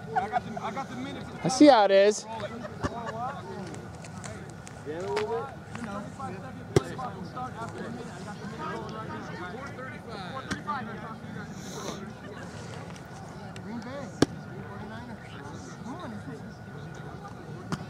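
Several men talk and call out to each other outdoors on an open field.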